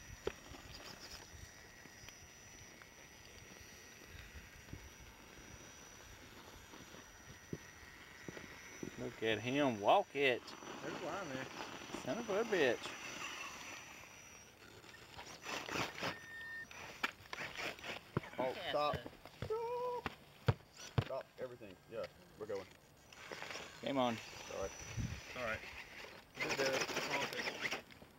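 The electric motor of a radio-controlled rock crawler whines as it climbs over rock.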